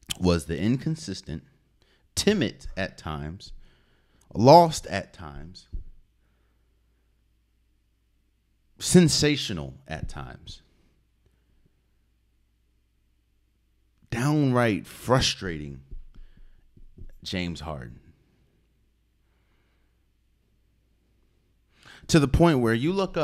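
A man speaks with animation into a close microphone, pausing between phrases.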